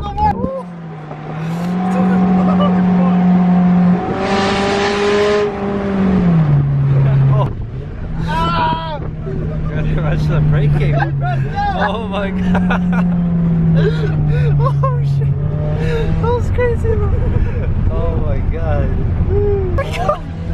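A car engine hums steadily, its pitch rising and falling.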